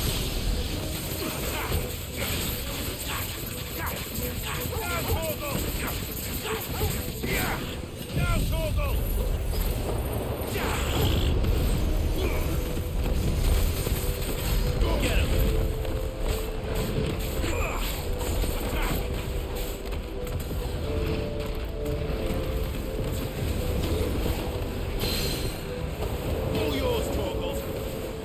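Electric blasts crackle and crash in a game battle.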